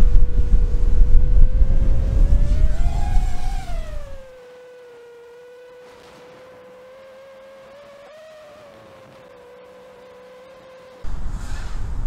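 A small drone's motors whine steadily, their pitch rising and falling as it flies.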